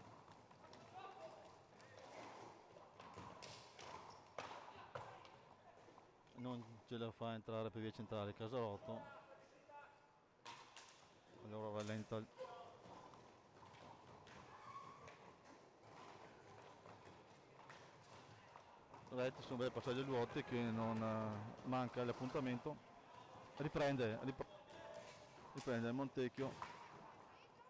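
Hockey sticks clack against a ball in an echoing hall.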